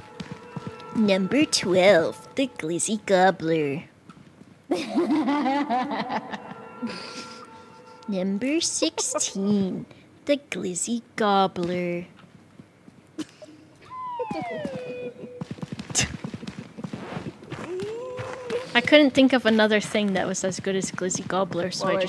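A young woman talks and laughs with animation through a headset microphone.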